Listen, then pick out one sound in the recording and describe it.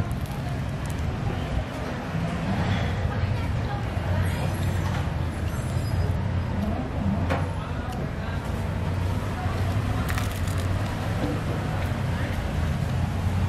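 A girl chews food close by.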